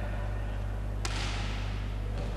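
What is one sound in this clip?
A volleyball is spiked with a sharp slap.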